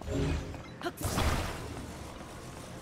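A loud whooshing burst sounds suddenly.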